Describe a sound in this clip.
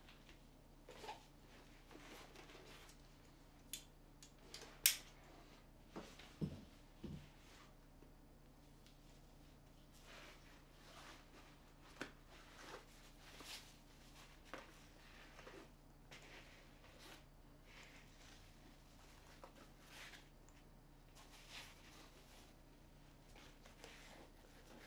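A bag rustles and crinkles as it is handled.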